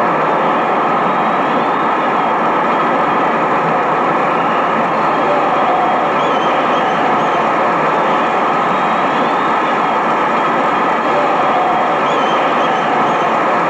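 A large crowd roars steadily in an open stadium.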